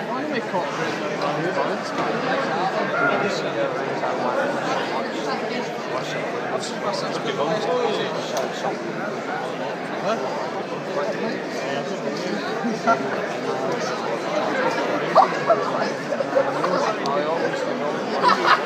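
A man talks close by, low and calm.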